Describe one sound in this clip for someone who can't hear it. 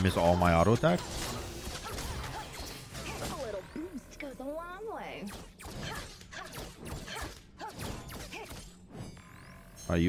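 Magic blasts and clashing weapons ring out in a video game battle.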